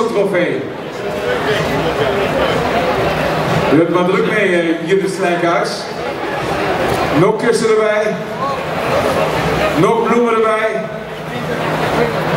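An elderly man speaks with animation into a microphone, heard over loudspeakers.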